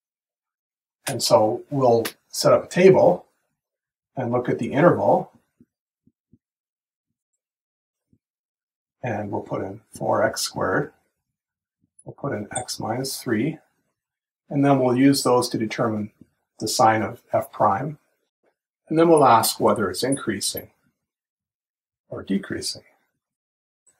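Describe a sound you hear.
A man speaks calmly and clearly into a close microphone, explaining in short phrases with pauses.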